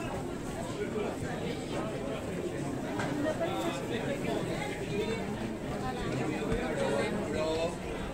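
Footsteps shuffle on stone pavement.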